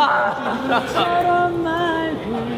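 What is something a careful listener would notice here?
Young men laugh close by.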